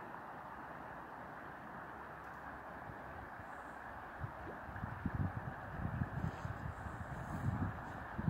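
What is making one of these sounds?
A river flows and murmurs steadily nearby.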